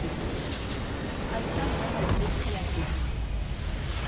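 A structure explodes loudly.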